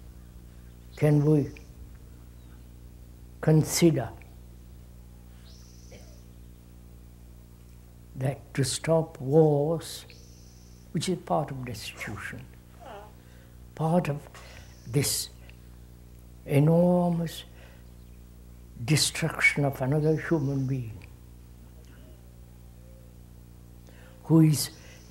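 An elderly man speaks slowly and calmly, close by, with long pauses.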